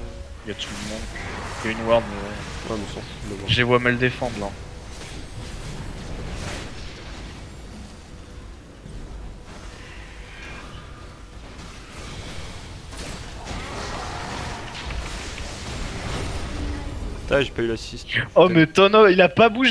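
Magic blasts whoosh and crackle in a video game battle.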